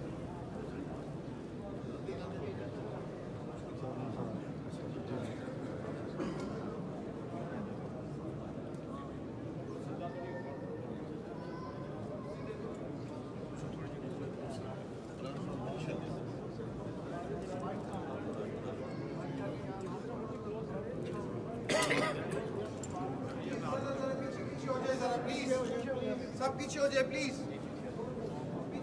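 A large crowd of men murmurs and chants together in a large echoing hall.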